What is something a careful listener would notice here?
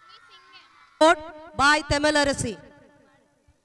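Another girl speaks loudly through a microphone.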